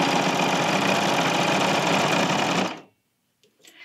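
A sewing machine runs fast with a steady whirring buzz, then stops.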